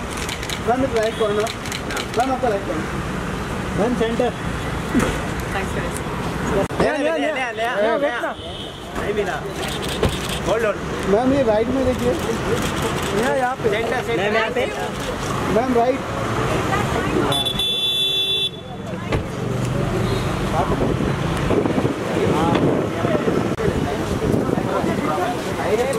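Traffic hums along a busy street outdoors.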